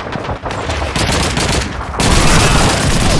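Machine guns fire in rapid bursts nearby.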